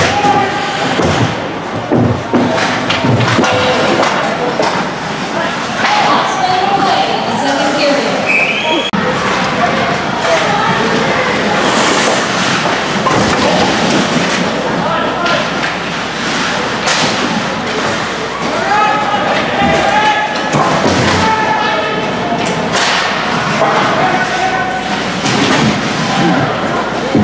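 Players shout to each other in a large echoing hall.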